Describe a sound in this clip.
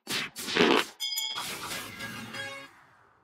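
Chimes ring out as rewards pop up.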